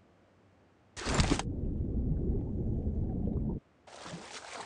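A game character splashes into water with a loud rush.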